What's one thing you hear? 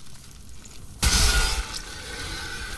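A heavy blade clangs hard against metal.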